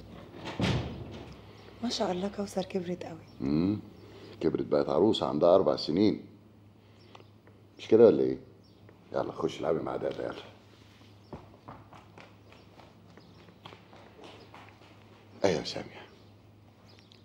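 An older man speaks warmly and close by.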